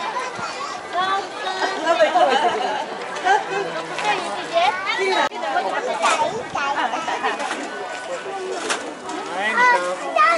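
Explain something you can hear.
Young children chatter and call out excitedly nearby.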